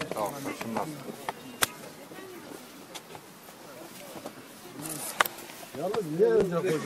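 Men talk loudly and excitedly close by in a crowd.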